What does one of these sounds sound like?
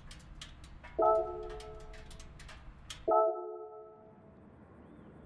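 A bright menu chime rings twice.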